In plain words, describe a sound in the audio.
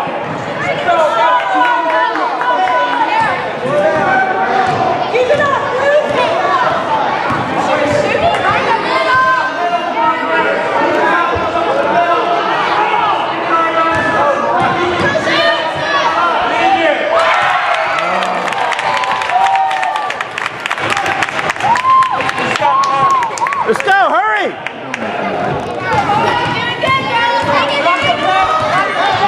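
A basketball bounces on the wooden floor.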